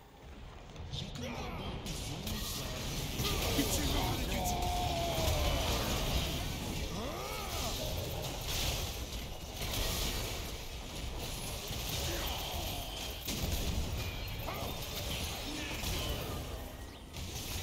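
Game spell effects whoosh, crackle and burst during a fight.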